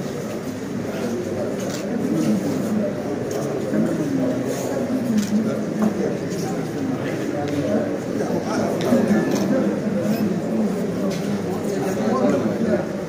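A crowd of men and women talks and murmurs all at once in an echoing room.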